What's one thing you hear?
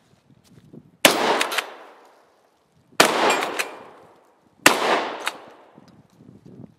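A shotgun fires loudly outdoors, echoing off the woods.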